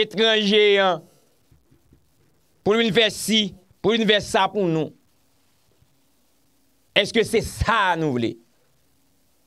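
A young man speaks with animation, close into a microphone, in short bursts with pauses.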